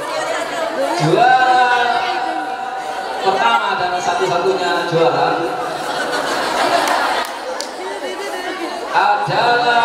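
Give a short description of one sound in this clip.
A middle-aged man reads out a speech through a microphone and loudspeakers.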